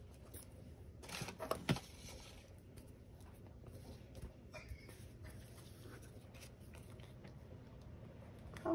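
Paper rustles and slides across a table.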